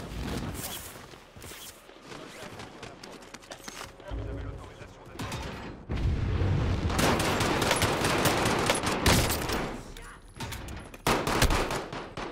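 A man talks through a microphone.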